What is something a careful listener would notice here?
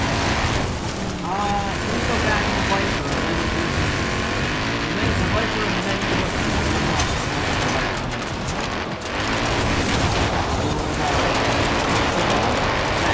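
Tyres rumble and splash over muddy dirt.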